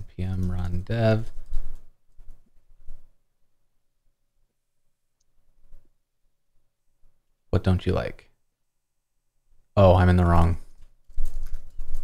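A man speaks casually over an online call, in short bursts.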